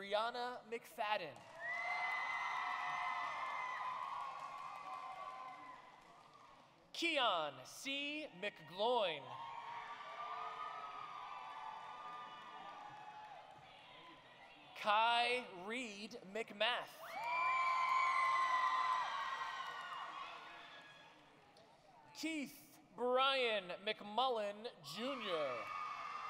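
A crowd cheers and whoops in a large echoing hall.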